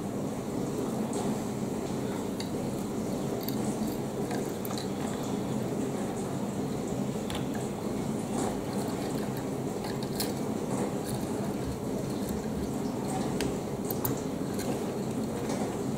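Small plastic toy bricks click and snap together.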